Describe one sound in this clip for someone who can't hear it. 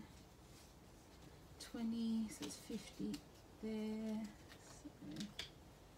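Paper banknotes rustle softly as they are handled.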